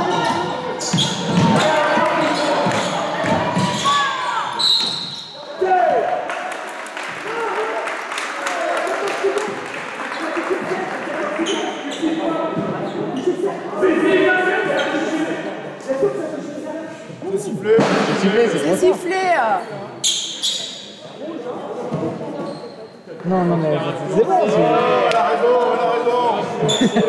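Young male players shout and call to one another in a large echoing hall.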